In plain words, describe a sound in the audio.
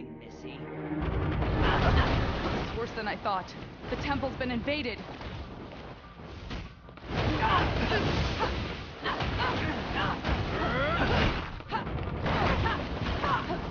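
Blows land with sharp hits and crackling bursts.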